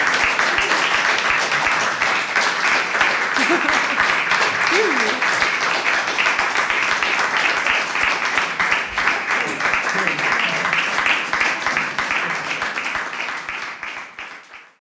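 An audience claps and applauds loudly, then fades.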